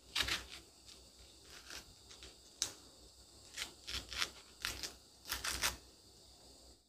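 A knife slices through soft fruit with crisp, wet cuts.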